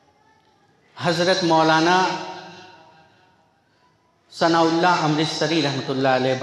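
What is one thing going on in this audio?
A man chants in a melodic voice through a microphone, echoing in a large hall.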